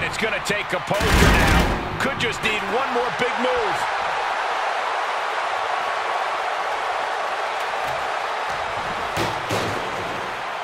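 Heavy thuds of bodies slamming onto a wrestling ring ring out.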